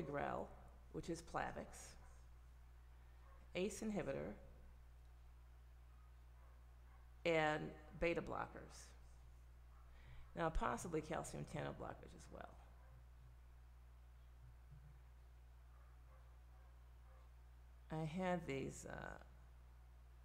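A middle-aged woman speaks calmly into a close microphone, in short bursts with pauses.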